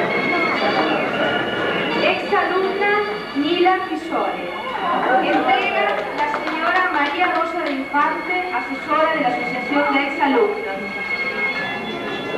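A woman speaks into a microphone over a loudspeaker, in a hall with echo.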